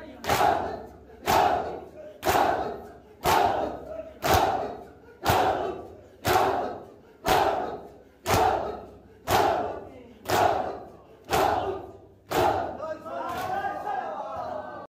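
A crowd of men chants loudly in an echoing hall.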